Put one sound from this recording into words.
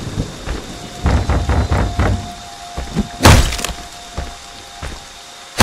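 Wood splinters and cracks as a door breaks apart.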